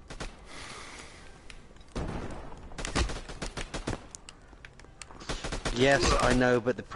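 Gunshots crack in quick, sharp bursts.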